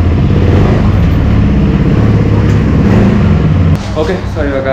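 A motorcycle engine rumbles loudly up close.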